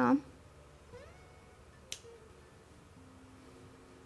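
Scissors snip a thread.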